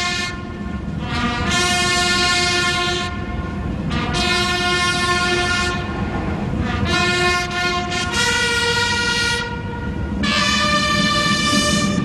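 A large crowd sings together outdoors.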